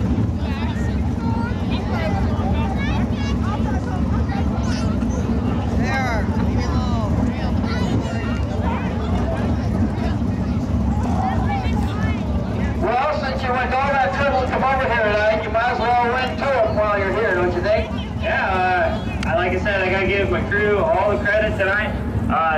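A race car engine idles with a low, steady rumble.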